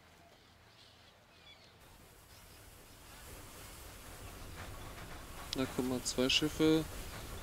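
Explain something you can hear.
Waves wash gently onto a beach.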